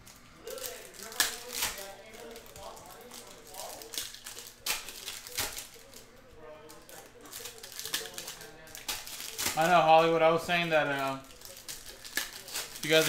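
Plastic card sleeves crinkle and rustle between fingers.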